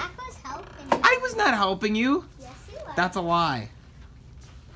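A small boy shouts excitedly.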